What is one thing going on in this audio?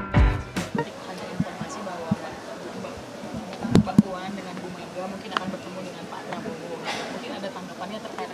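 A middle-aged woman speaks calmly into microphones, close by.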